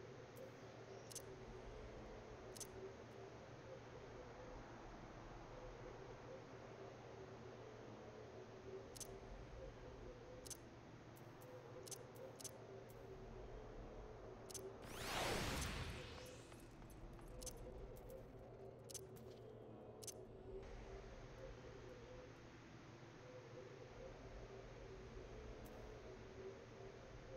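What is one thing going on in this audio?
Soft interface clicks tick now and then as menu items are selected.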